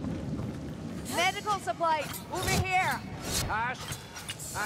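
Blades slash and strike with sharp metallic hits.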